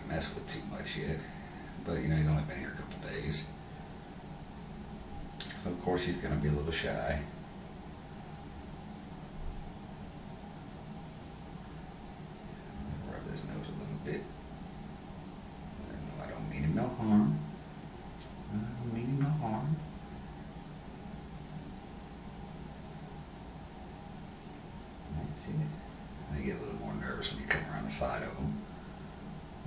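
A man speaks calmly and closely, in short bursts with pauses.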